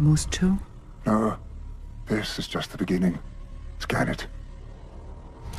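An elderly man answers calmly in a deep voice.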